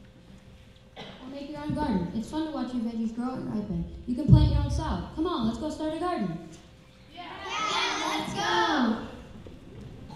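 A child speaks into a microphone in a hall with some echo.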